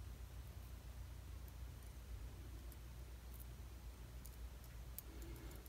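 Metal tweezers click softly against tiny metal beads.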